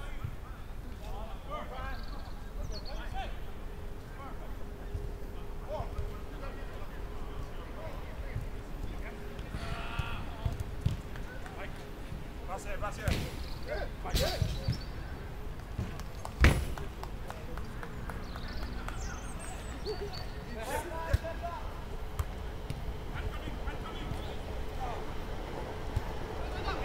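Men shout to each other across an outdoor pitch, heard from a distance.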